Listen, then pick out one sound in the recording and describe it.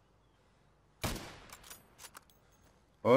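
A rifle fires a single loud shot that echoes briefly.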